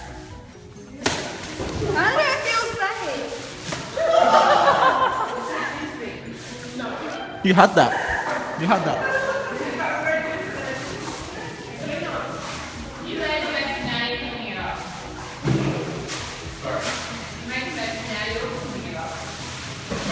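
Young men and women laugh and shout with excitement in an echoing room.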